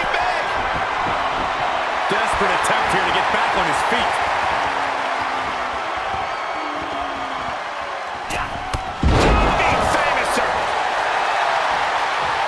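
A large crowd cheers and roars throughout in a big echoing arena.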